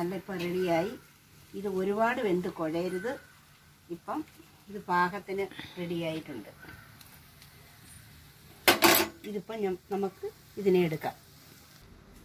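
An older woman talks calmly nearby.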